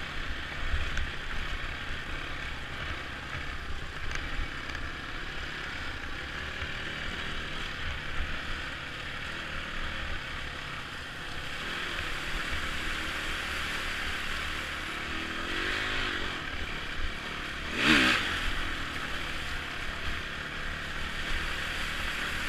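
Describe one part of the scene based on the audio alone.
A dirt bike engine drones steadily up close and revs now and then.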